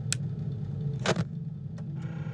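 Static crackles briefly.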